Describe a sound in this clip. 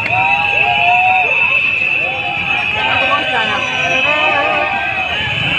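A crowd of protesters shouts outdoors.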